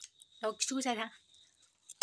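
A young woman bites and chews food.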